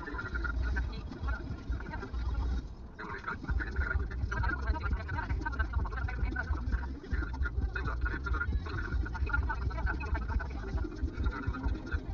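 A car's tyres rumble on asphalt, heard from inside the cabin.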